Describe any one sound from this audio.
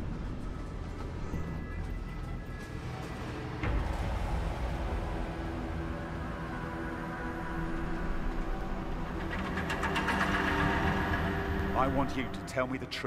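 A low, droning hum fills a large echoing space.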